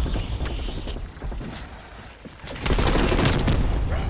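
A small remote-control car engine whirs and buzzes.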